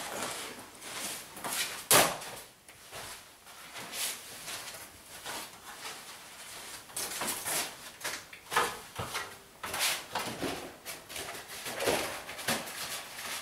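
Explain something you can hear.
A length of wallpaper rustles and crinkles as it is handled.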